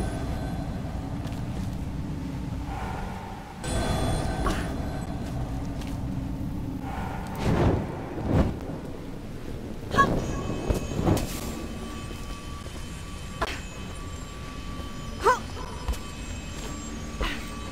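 Magic blasts crackle and thud in a fight.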